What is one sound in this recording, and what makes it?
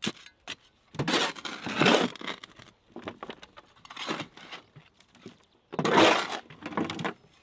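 Loose sand pours and rattles into a wheelbarrow.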